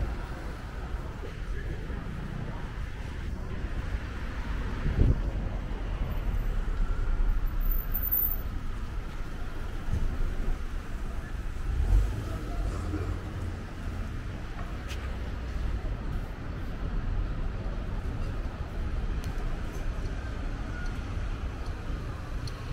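City traffic hums steadily nearby on a street.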